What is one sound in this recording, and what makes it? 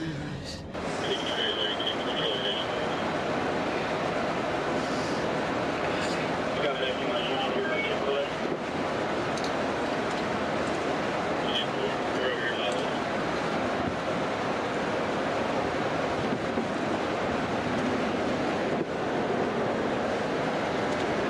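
A car engine hums steadily inside a vehicle.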